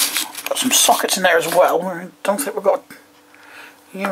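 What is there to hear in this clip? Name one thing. Metal tools clink and rattle as a hand handles them.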